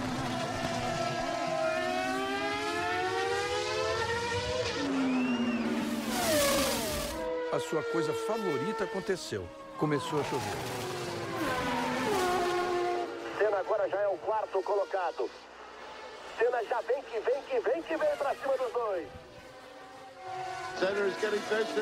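Racing car engines scream at high revs.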